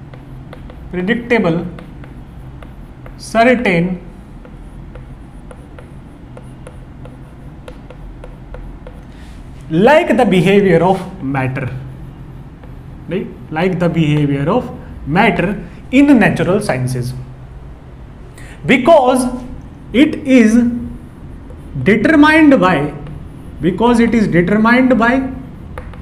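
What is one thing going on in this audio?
A young man speaks calmly and explains things.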